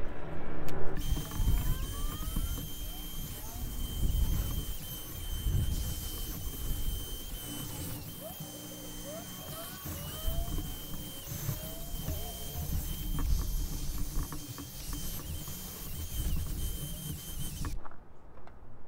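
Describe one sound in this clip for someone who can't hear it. A wire brush scrubs against metal.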